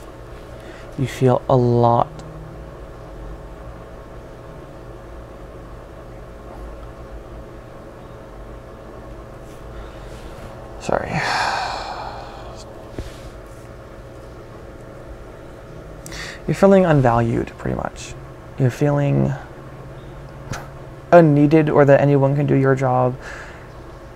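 A man speaks slowly and hesitantly, close by.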